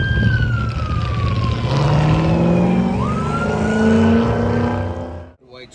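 A car engine roars and revs hard, rising and falling in pitch.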